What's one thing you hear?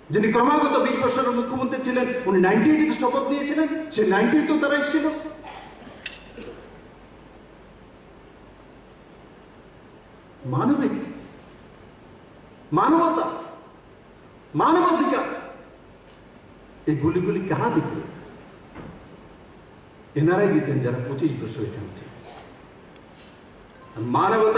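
A man speaks forcefully into a microphone over loudspeakers, in bursts with pauses.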